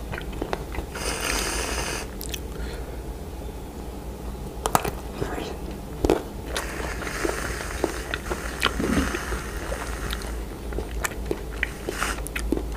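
Whipped cream hisses as it sprays from a can.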